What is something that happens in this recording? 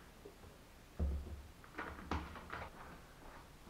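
Plastic bowls are set down on a table.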